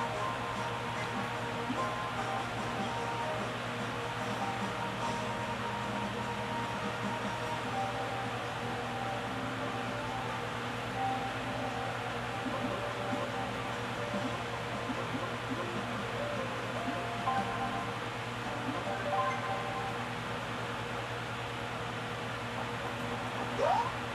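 Cheerful video game music plays from a television speaker.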